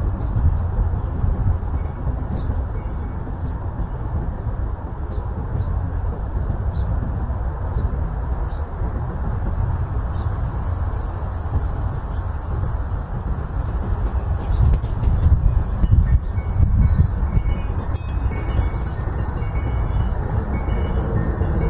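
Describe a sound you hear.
Wind blows outdoors, rumbling loudly up close.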